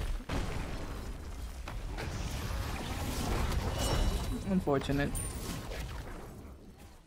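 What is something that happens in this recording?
A magical blast explodes with a deep rumble.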